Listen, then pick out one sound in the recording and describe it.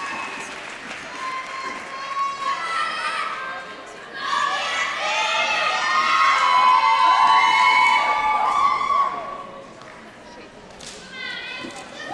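A crowd cheers and screams in a large echoing hall.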